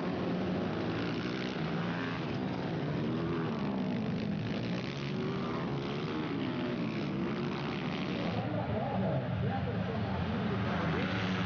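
Dirt bike engines rev and whine loudly, rising and falling in pitch.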